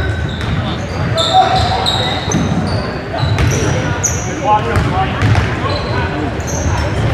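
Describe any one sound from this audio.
Sneakers squeak sharply on a hardwood floor in a large echoing gym.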